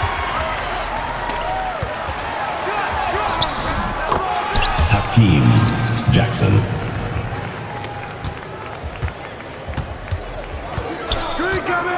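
A ball bounces on a hardwood floor.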